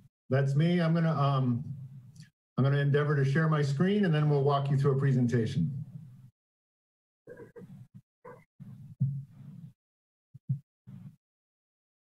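An older man talks with animation over an online call.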